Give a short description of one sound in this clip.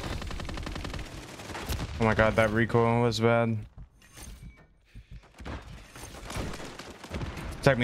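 Rapid gunfire crackles from a video game.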